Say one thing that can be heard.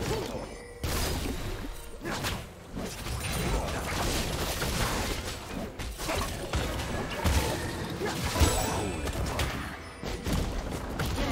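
Game spell effects and blasts crackle and boom in a rapid fight.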